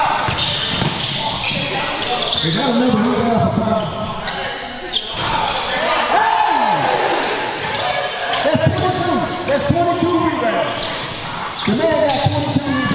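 Spectators chatter and call out in the background.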